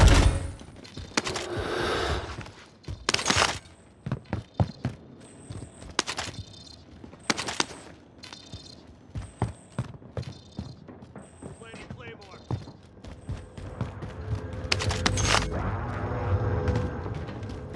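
Footsteps thud and scuff quickly across a hard concrete floor.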